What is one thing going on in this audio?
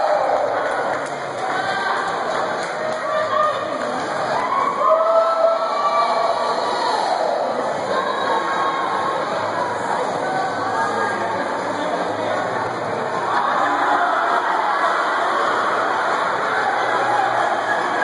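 Water splashes as a paddle strikes it.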